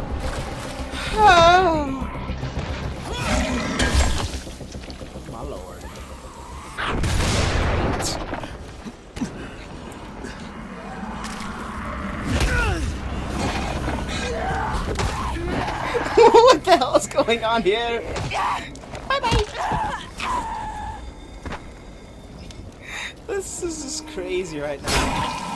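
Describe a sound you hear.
A blade strikes flesh with heavy, wet thuds.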